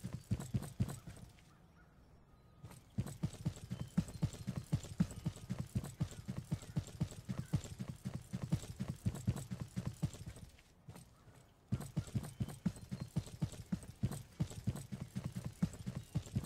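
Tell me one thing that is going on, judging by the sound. Footsteps thud quickly and steadily on pavement.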